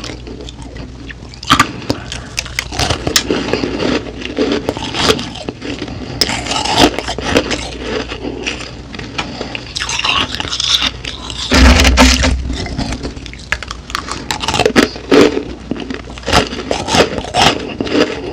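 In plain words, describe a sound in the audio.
Ice crunches loudly as a woman bites and chews it close to a microphone.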